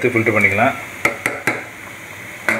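A metal ladle knocks against the rim of a metal pot.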